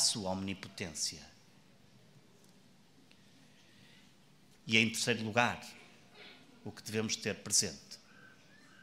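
A man speaks calmly into a microphone in a large echoing hall, pausing between phrases.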